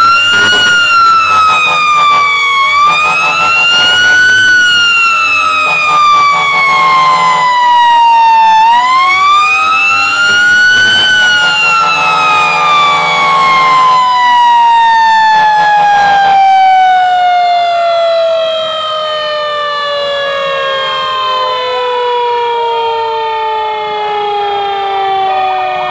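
A siren wails loudly close by, rising and falling and then slowly sliding down in pitch.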